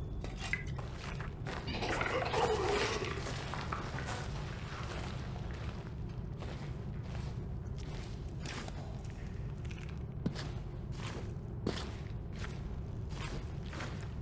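Footsteps tread slowly on a stone floor.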